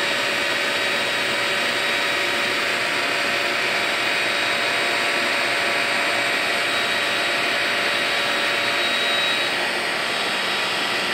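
A small electric blower whirs steadily close by.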